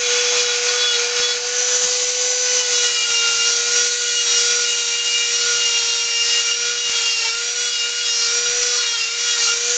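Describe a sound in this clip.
A rotary tool grinds into wood.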